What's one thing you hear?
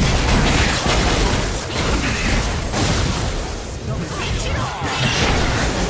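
Spell effects burst and crackle in a hectic fight.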